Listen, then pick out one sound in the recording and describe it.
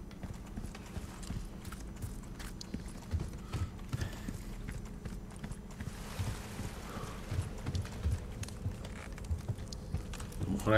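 Footsteps thud slowly on stone.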